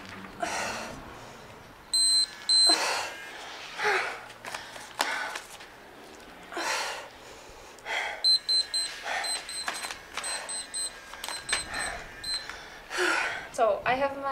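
A woman breathes hard in quick bursts.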